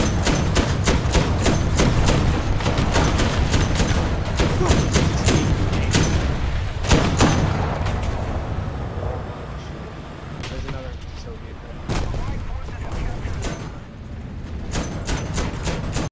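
An autocannon fires in rapid bursts.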